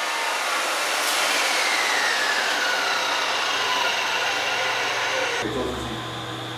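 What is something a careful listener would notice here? A chop saw's motor winds down with a falling whine.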